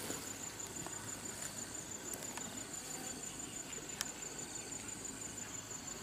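A plastic bag crinkles and rustles.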